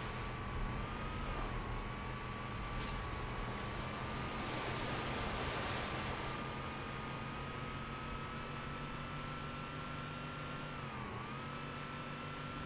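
Tyres rumble over rough ground.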